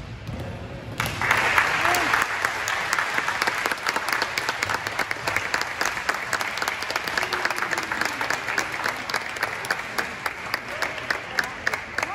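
Hands clap rapidly and steadily.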